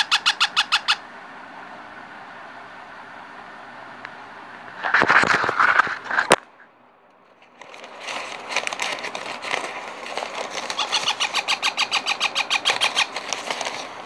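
Young parrot chicks chirp in rapid, repeated begging calls.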